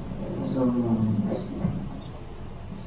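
A man speaks briefly in a large room.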